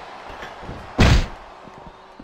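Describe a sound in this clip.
A loud body slam thuds onto a wrestling mat.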